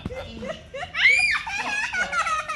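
A woman squeals with laughter.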